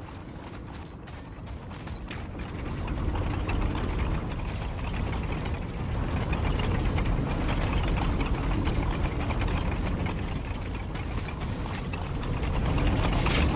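Heavy footsteps crunch on the ground at a run.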